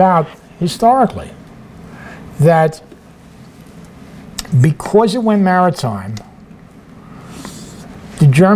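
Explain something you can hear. An elderly man speaks calmly through a microphone, in short phrases with pauses.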